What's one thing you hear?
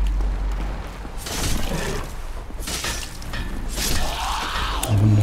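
Weapons clash during a fight with a creature.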